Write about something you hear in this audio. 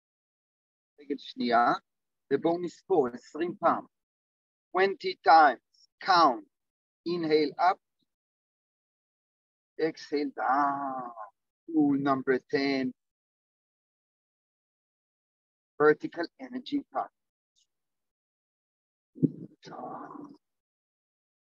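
A middle-aged man speaks calmly and clearly into a clip-on microphone, with pauses between phrases.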